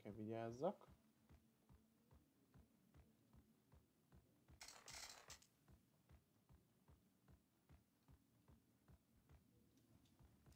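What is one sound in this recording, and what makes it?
Footsteps tap steadily on wooden floorboards.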